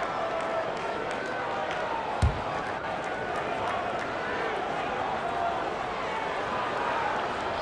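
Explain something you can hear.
Basketball shoes squeak sharply on a hardwood court.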